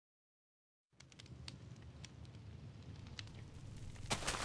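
Blocks are placed with short, soft clicks.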